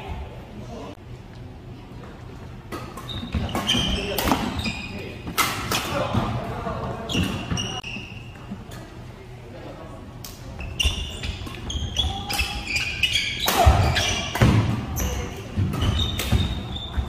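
Badminton rackets smack a shuttlecock back and forth.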